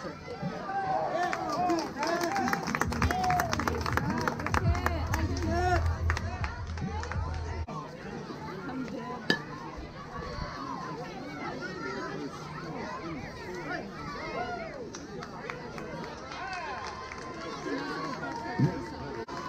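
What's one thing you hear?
Children and adults cheer and shout outdoors.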